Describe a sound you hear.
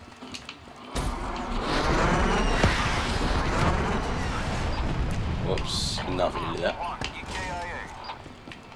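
Heavy explosions boom and rumble in a long roar.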